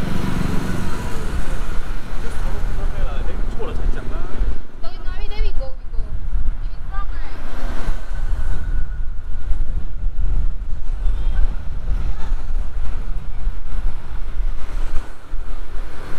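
Traffic hums along a street nearby.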